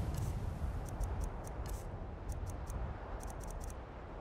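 Menu clicks tick in quick succession.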